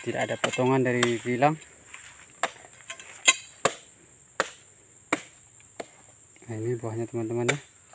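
A metal blade thuds sharply into fruit bunches, one blow after another.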